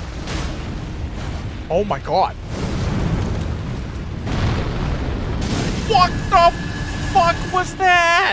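Fire roars and bursts with loud rumbling blasts.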